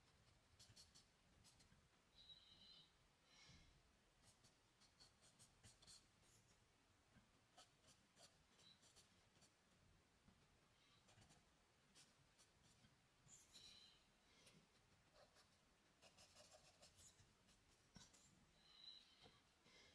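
Charcoal scratches and rubs on paper in short strokes.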